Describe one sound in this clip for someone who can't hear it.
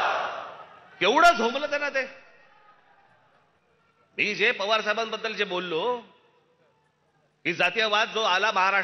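A middle-aged man speaks forcefully into a microphone over loudspeakers, with pauses.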